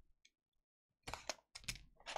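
A blade scrapes and slices through plastic wrap.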